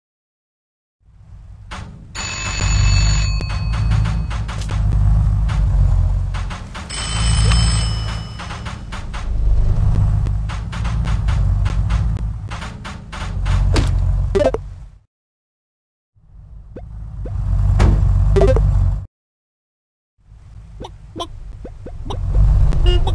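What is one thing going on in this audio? Small cartoon cars whoosh past.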